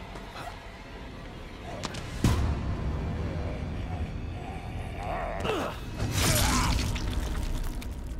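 Heavy blows thud during a scuffle.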